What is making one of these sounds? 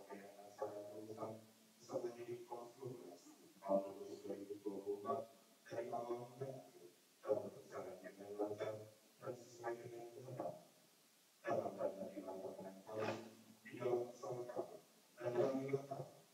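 A man reads out a speech calmly through a microphone and loudspeakers in a large hall.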